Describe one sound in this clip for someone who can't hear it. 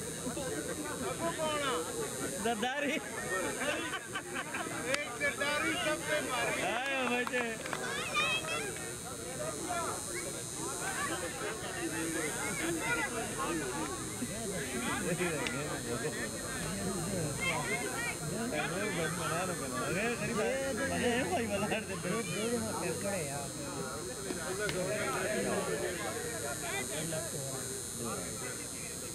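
Several men talk and call out outdoors, close by and at a distance.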